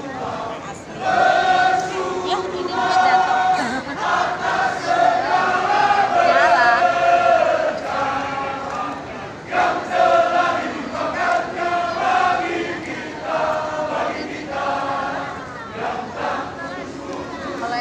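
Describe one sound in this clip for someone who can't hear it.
A large crowd sings along loudly.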